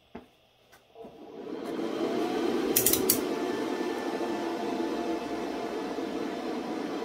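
A computer fan spins up and whirs steadily.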